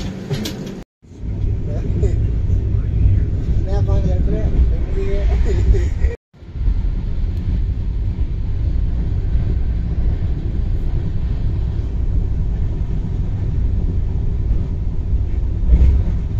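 A train rumbles and rattles steadily along the track, heard from inside the carriage.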